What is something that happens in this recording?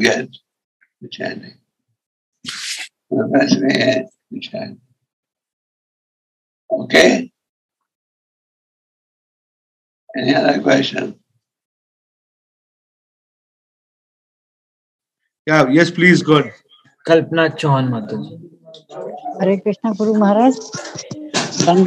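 An elderly man speaks with animation over an online call, in short bursts with pauses.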